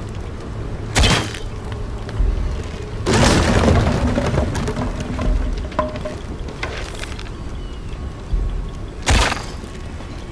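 An arrow is shot from a bow with a sharp snap.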